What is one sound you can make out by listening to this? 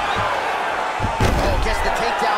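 A body slams onto a mat with a heavy thud.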